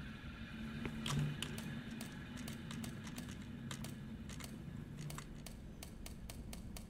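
A safe's combination dial clicks as it turns.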